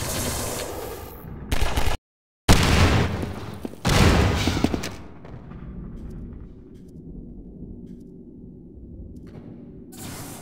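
Footsteps scuff across a concrete floor.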